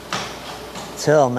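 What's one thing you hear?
A man speaks close by.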